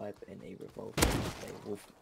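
A gun fires a single shot.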